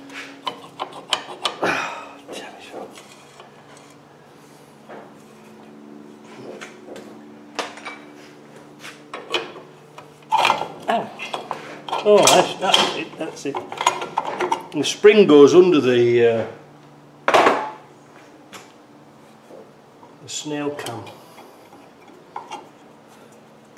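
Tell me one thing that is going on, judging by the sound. Metal parts clink and scrape against each other.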